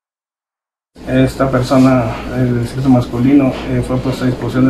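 A man speaks calmly into microphones close by.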